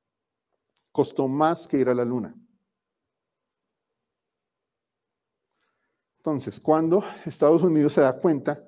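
A man speaks calmly into a microphone, pausing between phrases.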